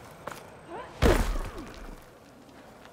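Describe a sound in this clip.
A loud low thump sounds as a figure drops down.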